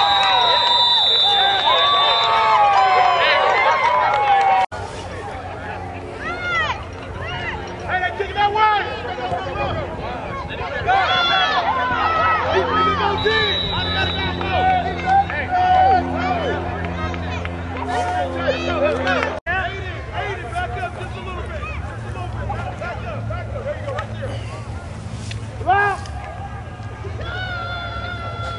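Players shout across an open outdoor field in the distance.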